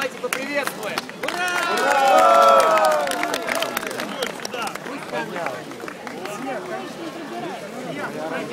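A crowd of men and women talks and calls out all around outdoors.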